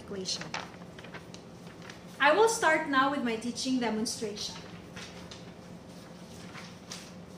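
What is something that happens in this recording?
Paper rustles in a young woman's hands.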